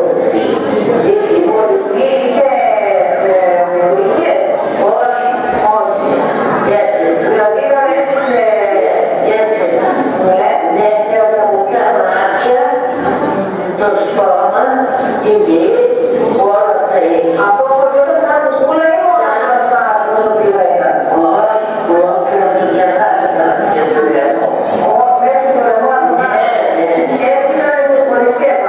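An elderly man talks with animation, heard through a loudspeaker in a room.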